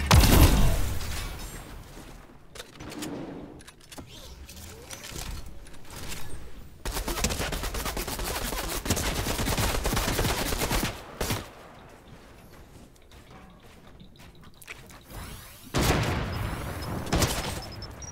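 Game building pieces snap into place with quick clicking thuds.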